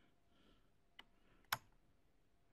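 A switch clicks on a bench power supply.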